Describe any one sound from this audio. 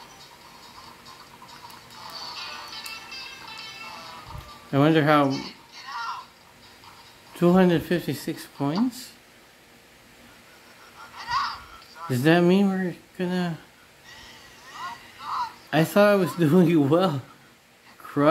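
Tinny electronic music plays from a handheld game's small speaker.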